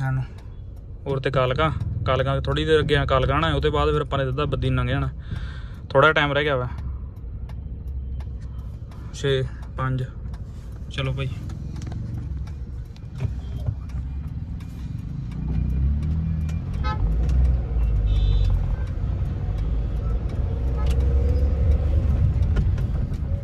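A car engine hums steadily with a low road rumble, growing louder as the car speeds up.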